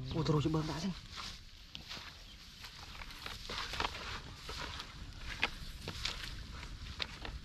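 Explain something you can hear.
Footsteps crunch on dry straw.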